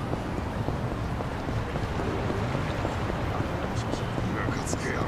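Footsteps slap quickly on hard pavement as a man runs.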